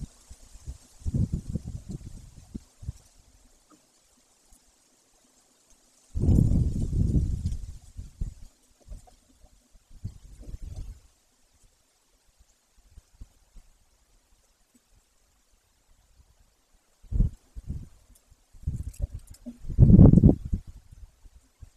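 Wind gusts buffet and rustle through the trees outdoors.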